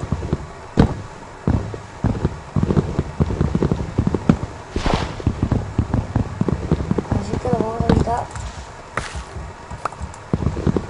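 Wooden blocks knock and crack as they are broken one after another.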